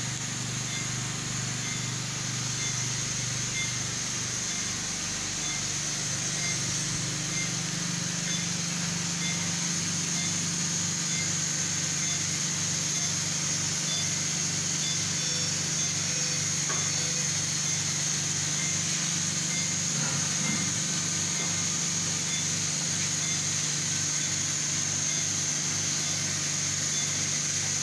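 Medical equipment hums steadily.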